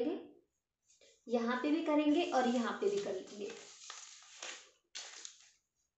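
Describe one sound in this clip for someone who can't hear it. Newspaper rustles and crinkles as hands handle it.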